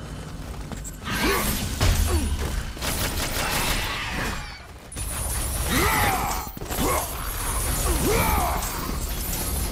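Creatures shriek as they are hit.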